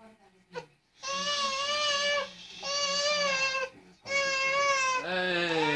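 A baby squeals loudly in long, high cries close by.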